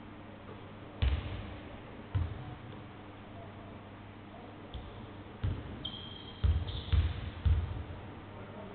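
A basketball bounces heavily on a wooden floor in an echoing hall.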